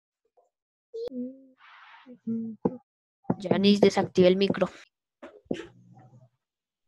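A girl talks in short bursts through an online call.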